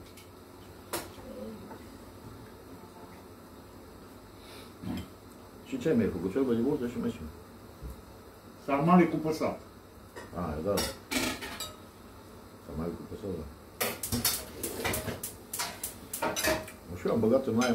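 Spoons clink against plates.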